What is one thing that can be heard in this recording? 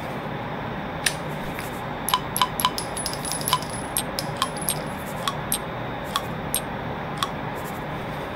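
A revolver clicks as cartridges are loaded into its cylinder.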